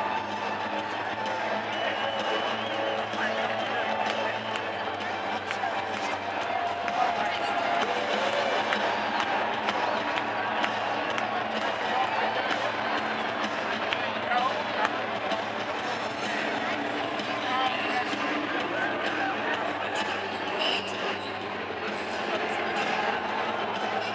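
A large crowd cheers and chatters loudly all around.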